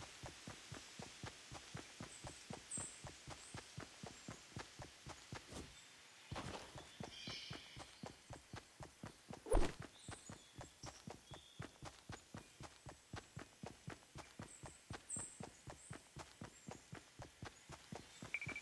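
Footsteps run quickly on grass.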